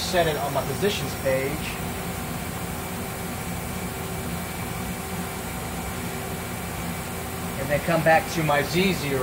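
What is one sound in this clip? A lathe machine hums steadily.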